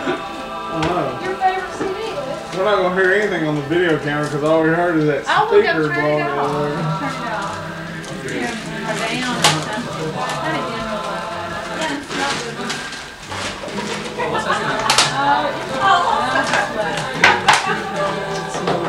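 Several men and women talk and chat casually nearby.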